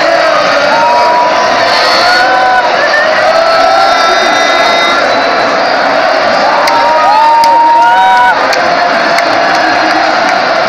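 A huge crowd roars and cheers loudly in a large open stadium.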